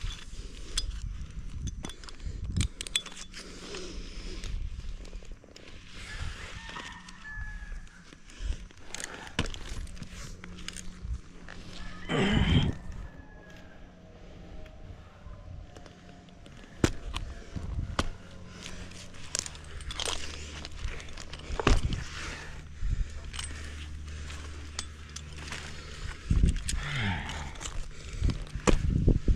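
A climber's gear clicks and rattles against the rope.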